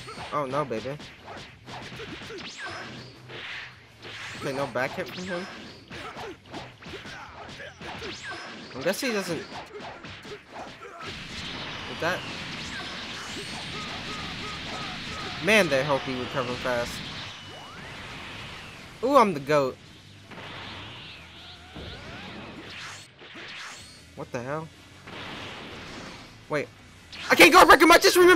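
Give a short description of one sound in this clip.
Punches and kicks land with sharp, rapid thuds.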